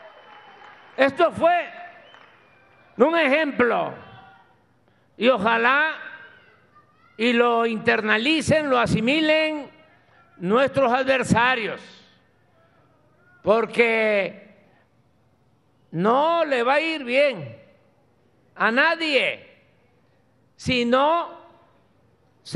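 An elderly man speaks slowly and firmly into a microphone, with long pauses.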